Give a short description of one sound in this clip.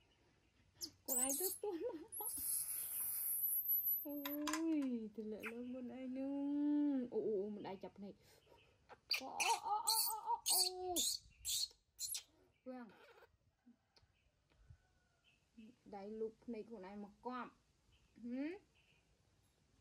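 A young woman speaks softly and coos close by.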